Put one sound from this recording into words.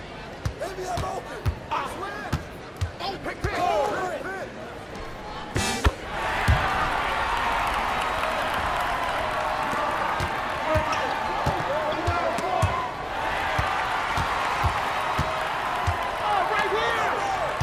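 A basketball bounces on a hard court in steady dribbles.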